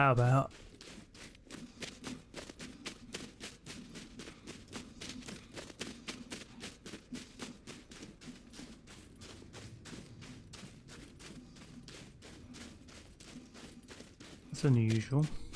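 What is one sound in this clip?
Footsteps crunch quickly and steadily through snow.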